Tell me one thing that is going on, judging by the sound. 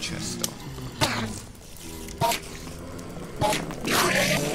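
A sword strikes a creature with sharp thwacks.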